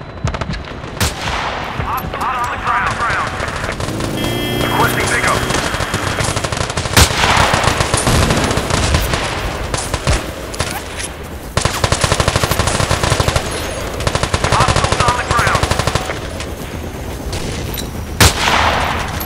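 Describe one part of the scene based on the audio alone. A sniper rifle fires with a sharp crack.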